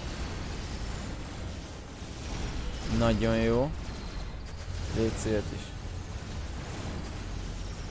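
Game gunfire and effects crackle steadily.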